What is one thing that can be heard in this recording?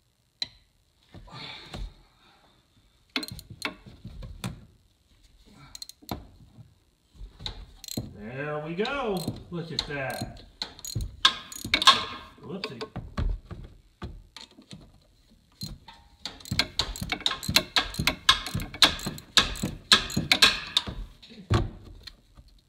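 A ratchet wrench clicks rapidly as a bolt is turned.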